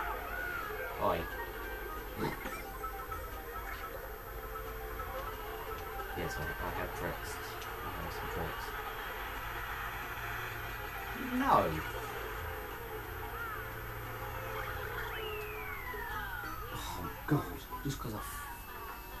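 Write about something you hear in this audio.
Tinny sound effects pop and whoosh from a television.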